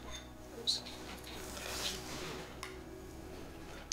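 A spoon clinks softly against a bowl.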